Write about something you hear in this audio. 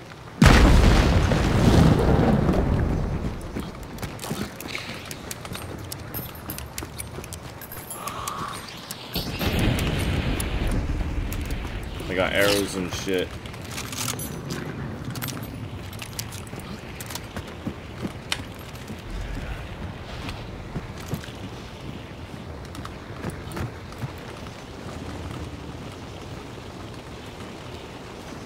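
Footsteps thud on wooden boards and dirt.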